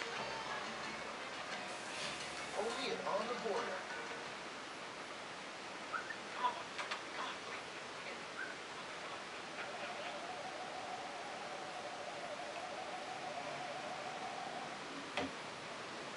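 A dog and a cat tussle softly on a carpet, with light scuffling and rustling.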